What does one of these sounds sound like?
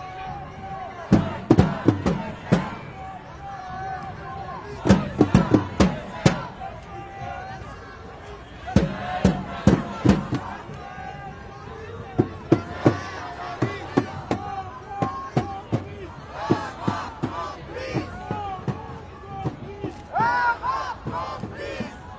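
A crowd of people murmurs and talks nearby.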